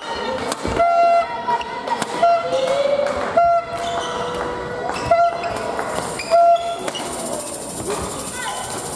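Rackets hit a shuttlecock back and forth with sharp pops in an echoing hall.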